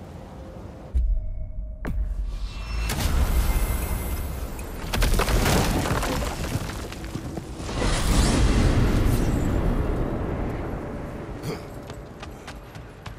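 A magical gateway opens with a deep, swelling rumble and whoosh.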